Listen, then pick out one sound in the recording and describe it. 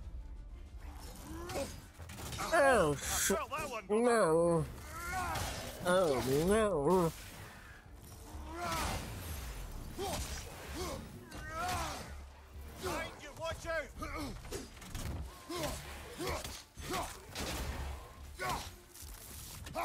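An axe swings and strikes with heavy thuds.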